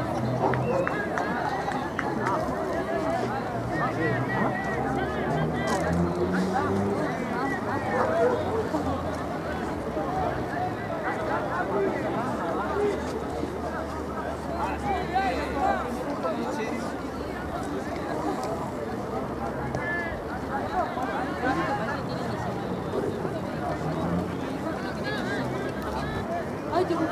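Many men talk and shout across an outdoor field.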